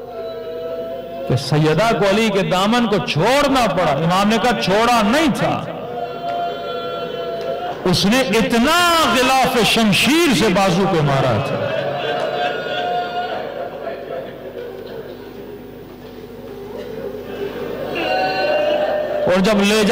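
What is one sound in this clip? A man speaks forcefully through a microphone.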